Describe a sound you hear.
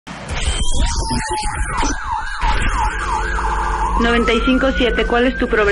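A man speaks with animation into a microphone, amplified through loudspeakers.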